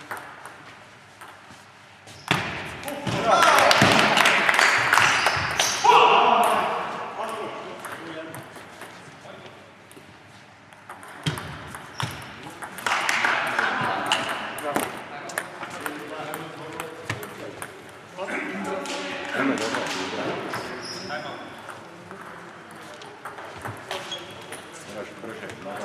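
A ping-pong ball clicks back and forth across a table in an echoing hall.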